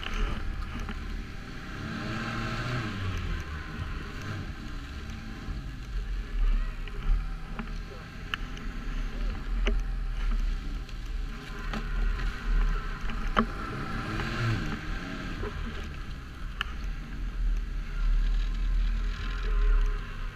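Wind buffets the rider outdoors.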